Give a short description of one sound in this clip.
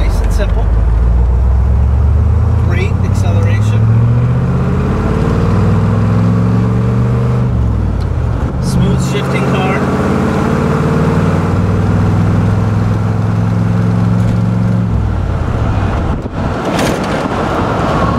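A car engine roars and rises in pitch as it speeds up, then drops as gears shift.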